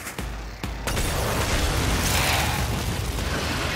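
Guns fire rapidly in a video game.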